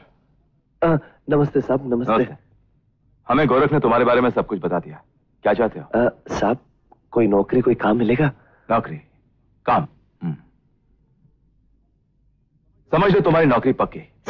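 A second man answers calmly.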